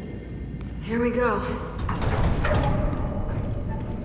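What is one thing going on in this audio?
Heavy metal doors creak and grind open.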